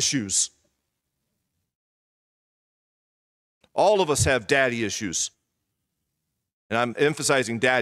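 An elderly man speaks with emphasis through a microphone, pausing between phrases.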